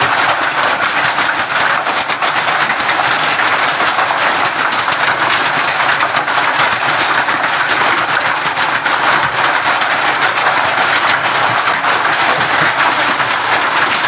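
Heavy rain drums loudly and steadily on a metal roof.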